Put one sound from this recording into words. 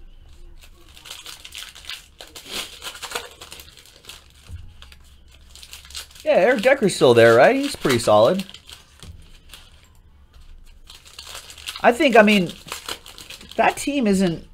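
Foil card wrappers crinkle and tear.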